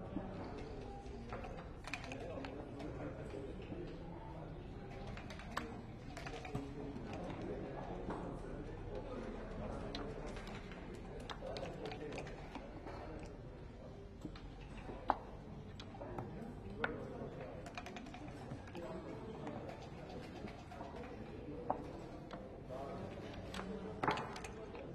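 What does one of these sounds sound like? Dice rattle in a cup and clatter onto a board.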